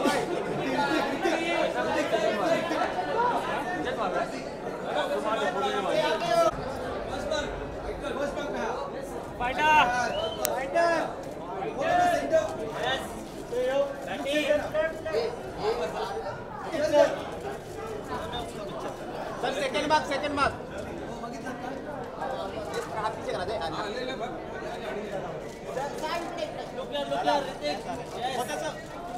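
A crowd of men call out and shout nearby.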